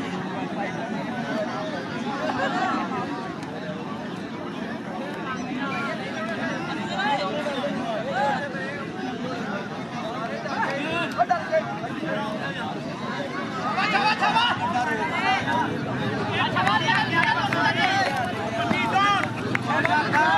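A large outdoor crowd of men cheers and shouts.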